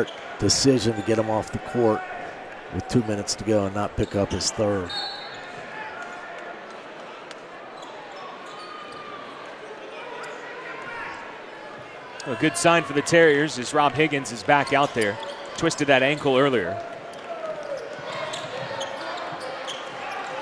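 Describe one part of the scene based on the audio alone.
A crowd murmurs throughout in a large echoing arena.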